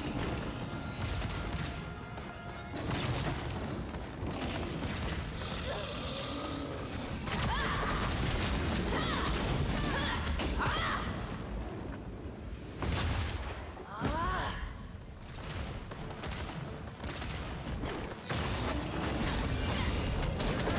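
Loud magical blasts and crackling lightning strikes boom and rumble over and over.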